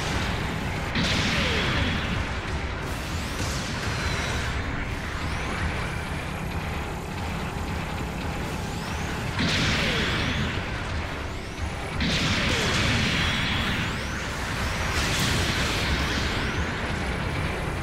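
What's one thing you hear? A robot's jet thrusters roar in short bursts.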